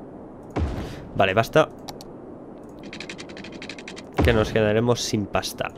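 A young man talks with animation close to a headset microphone.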